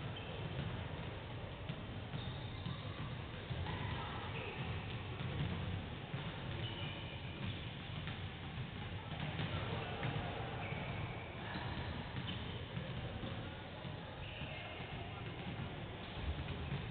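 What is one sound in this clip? Basketballs bounce on a hard court in a large echoing hall.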